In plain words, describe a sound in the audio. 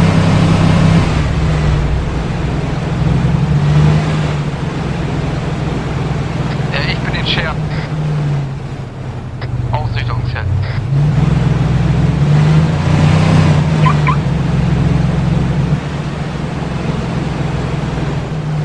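A pickup truck's engine hums steadily as it drives along a road.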